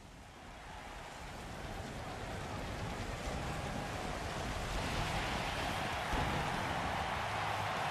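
A large crowd cheers and roars, growing louder.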